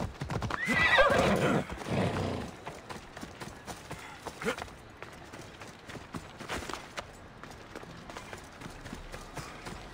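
Footsteps run over dirt and grass.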